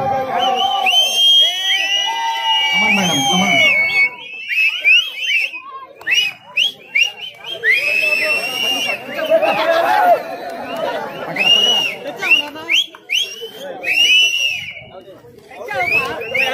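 A crowd shouts and cheers outdoors.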